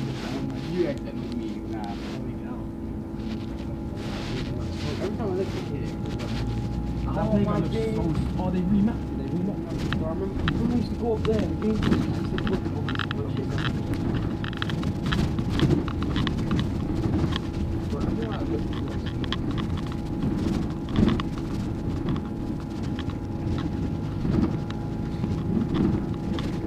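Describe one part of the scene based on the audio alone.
The bus body rattles and clatters over the road.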